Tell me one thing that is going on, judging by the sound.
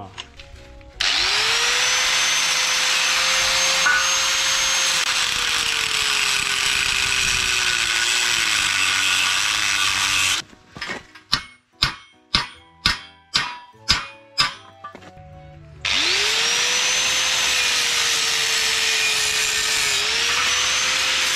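An angle grinder whines loudly as it cuts into a metal pipe.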